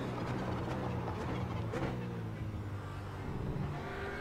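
A racing car engine drops in pitch as the car slows for a corner.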